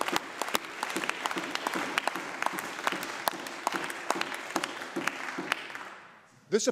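A crowd applauds in a large echoing hall, and the clapping dies away.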